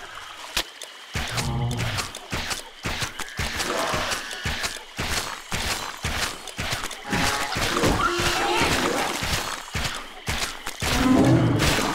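Weapons clash and strike in quick, repeated hits.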